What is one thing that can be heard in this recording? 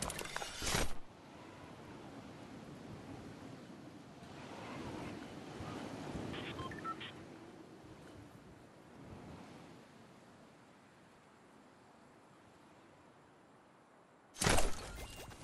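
Wind rushes steadily past during a glide.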